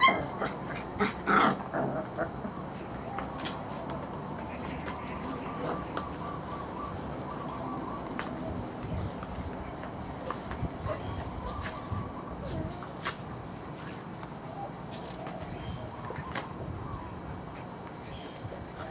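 Puppies whimper and squeal softly.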